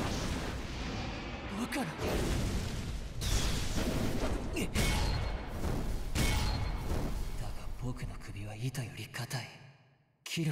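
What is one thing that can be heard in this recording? Fiery blasts roar and crackle.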